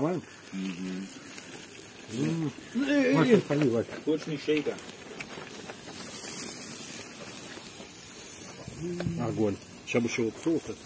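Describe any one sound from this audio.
Men talk with animation outdoors, close by.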